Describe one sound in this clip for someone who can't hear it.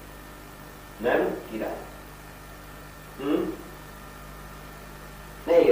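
A young man speaks in short phrases.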